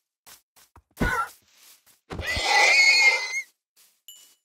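A pig squeals as it is struck.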